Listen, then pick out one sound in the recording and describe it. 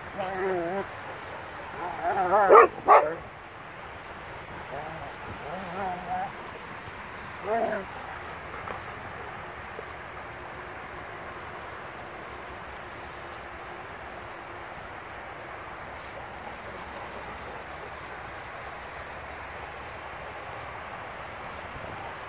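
Dogs run and rustle through the grass.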